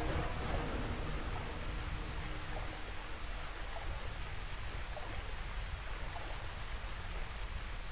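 Footsteps splash quickly through shallow water.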